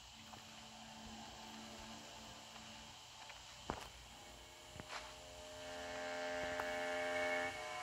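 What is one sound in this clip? A magic spell hums and crackles steadily.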